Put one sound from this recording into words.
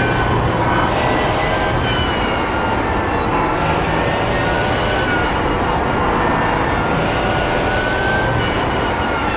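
A racing car engine roars at high revs, its pitch rising and falling with the gears.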